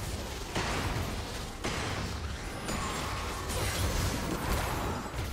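Magic spells whoosh and crackle in a video game battle.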